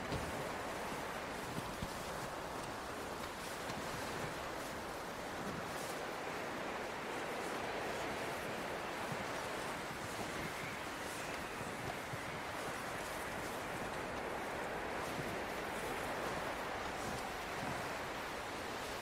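Wind blows steadily outdoors.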